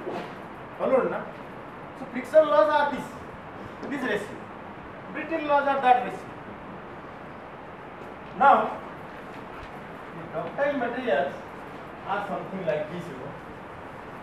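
A man speaks in short bursts with pauses.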